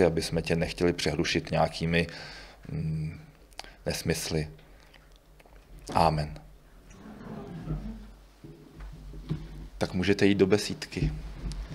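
A middle-aged man speaks calmly through a microphone in an echoing hall.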